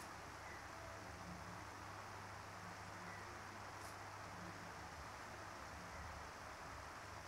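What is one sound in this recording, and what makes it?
Wrapping paper rustles and crinkles as a gift is unwrapped.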